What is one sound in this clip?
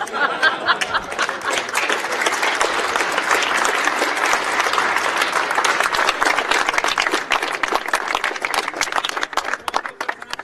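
A crowd claps loudly outdoors.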